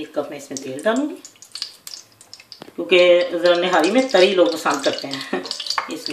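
Oil pours into a metal pot.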